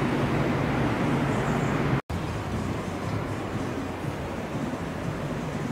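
Wind blows outdoors, rumbling against the microphone.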